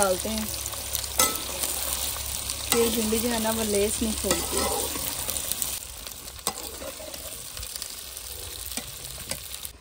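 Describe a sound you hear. A metal spatula scrapes and stirs in a metal pan.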